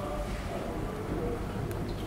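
Fingers rustle softly through hair.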